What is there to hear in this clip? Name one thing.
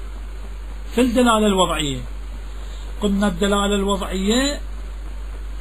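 A man chants in a melodic, drawn-out voice.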